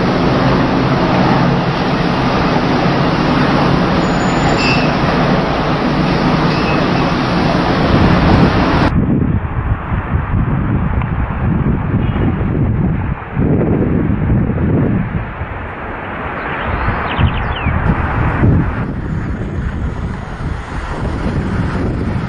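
Wind blows hard across the microphone outdoors.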